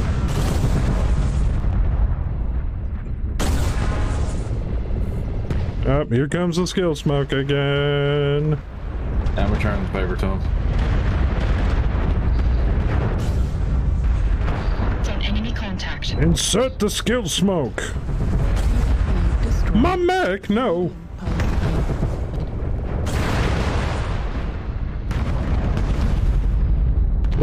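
Heavy weapons fire and explosions boom in a game.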